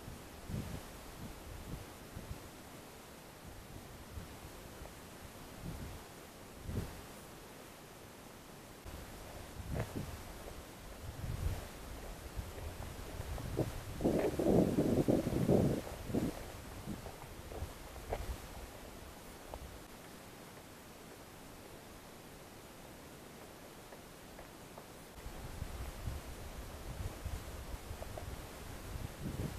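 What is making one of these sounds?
Wind blows and buffets in gusts outdoors.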